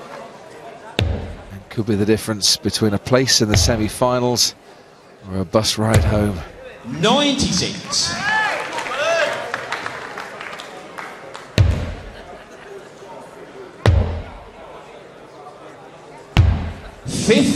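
Darts thud into a dartboard one at a time.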